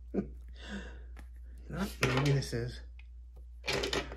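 A plastic bottle cap is twisted shut.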